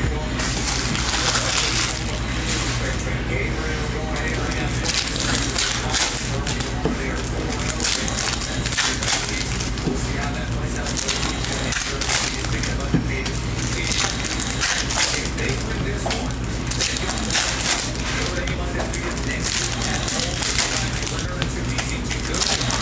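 Foil wrappers crinkle and tear as card packs are opened by hand.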